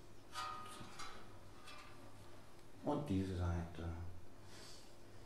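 A metal hand drum rings out with soft, bell-like tones.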